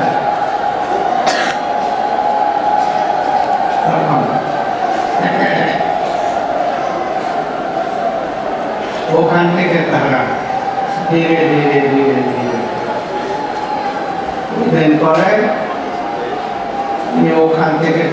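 An elderly man speaks slowly and calmly into a microphone, heard through a loudspeaker.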